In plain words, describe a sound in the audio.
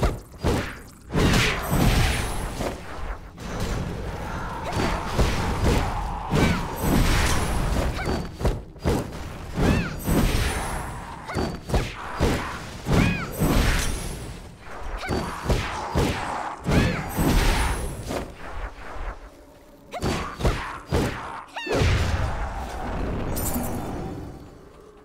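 Blows land on creatures with heavy thuds.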